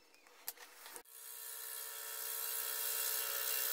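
A drill whines as it bores into wood.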